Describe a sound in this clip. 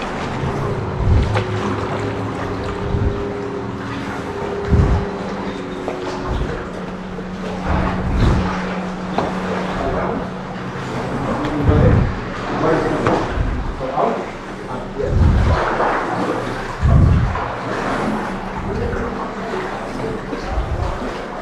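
Kayak paddles dip and splash in calm water.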